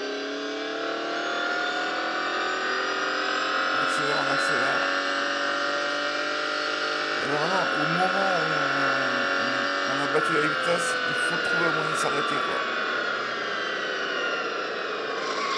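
A race car engine roars at high speed, its pitch slowly rising and falling.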